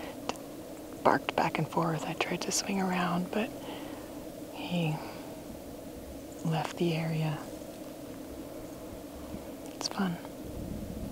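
A woman speaks quietly and calmly close by, in short phrases with pauses.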